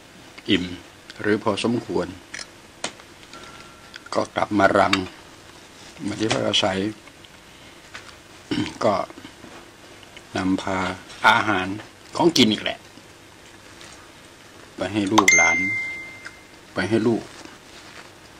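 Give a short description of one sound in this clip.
An elderly man talks calmly close by, in short phrases with pauses.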